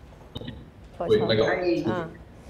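A young woman speaks in a room.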